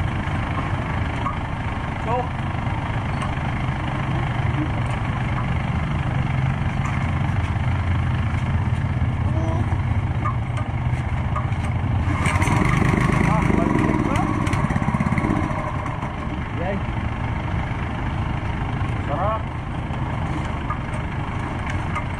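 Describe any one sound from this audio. A small petrol engine rumbles steadily close by.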